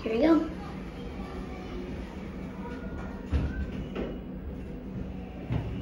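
Elevator doors slide shut with a soft rumble.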